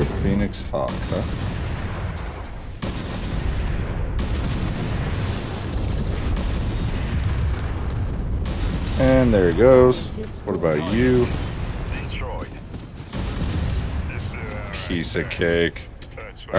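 Gunfire and explosions rumble steadily in a game.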